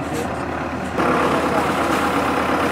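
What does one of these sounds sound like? A loader's engine rumbles as it tips out a load of earth.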